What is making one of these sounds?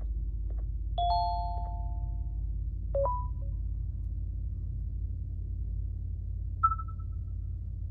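Short electronic beeps and chimes sound from a tablet game.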